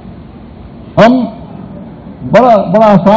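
A middle-aged man speaks loudly into a microphone.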